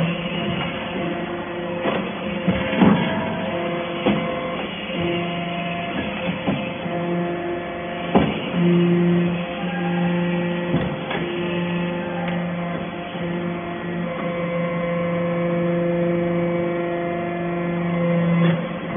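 A machine hums steadily with a low drone.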